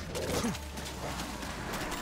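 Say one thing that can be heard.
Zombies growl and groan close by.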